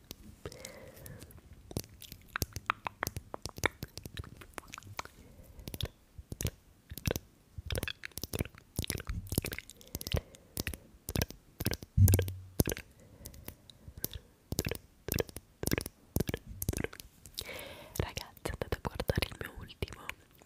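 A young woman whispers softly into a microphone up close.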